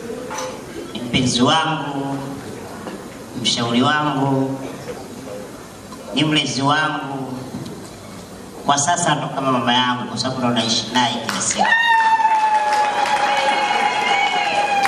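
A man sings with feeling into a microphone, heard over loudspeakers.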